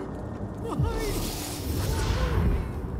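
A magic blast bursts with a crackling whoosh.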